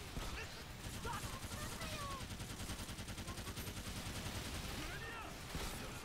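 Rapid gunfire rattles steadily.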